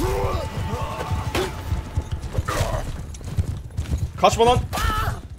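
Weapons clash and thud in a battle.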